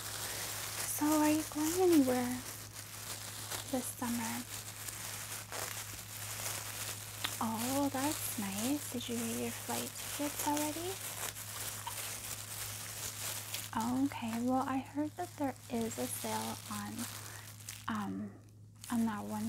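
A woman speaks calmly and close by into a microphone.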